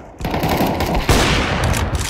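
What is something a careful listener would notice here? A sniper rifle fires a loud, booming shot.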